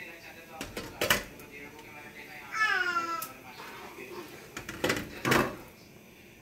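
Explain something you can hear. A metal pot lid clanks against a pan.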